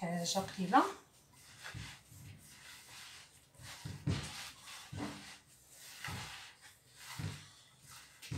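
Hands knead and squash crumbly dough in a bowl with soft, squelching thuds.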